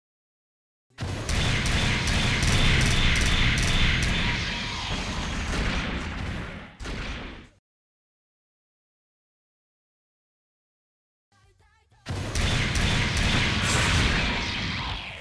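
A robot fires rapid energy blasts with loud crackling bursts.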